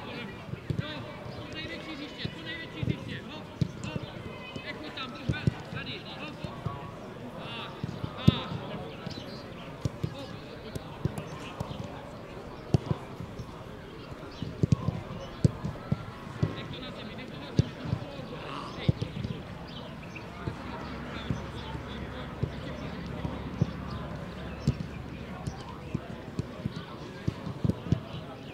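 Footballers shout to each other across an open outdoor pitch.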